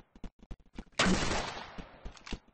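A musket fires a loud, booming shot.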